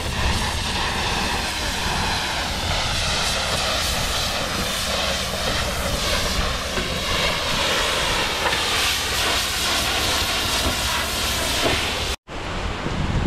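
A pressure washer sprays water in a loud, steady hiss.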